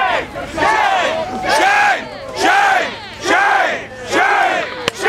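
A crowd chants loudly in rhythmic bursts.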